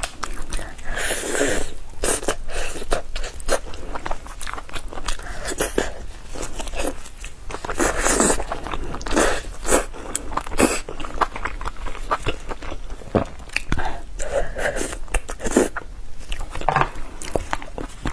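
A young woman chews and bites into crispy meat close to a microphone.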